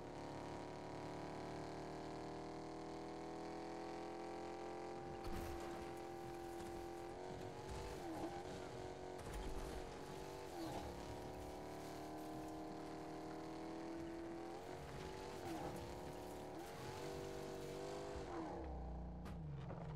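A car engine hums steadily, its pitch dipping and rising as the car bumps over rough ground.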